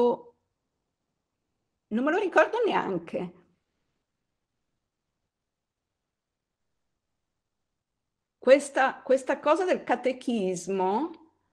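A middle-aged woman speaks hesitantly over an online call, with long pauses.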